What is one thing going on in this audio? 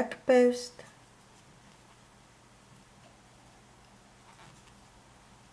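A crochet hook softly draws yarn through stitches.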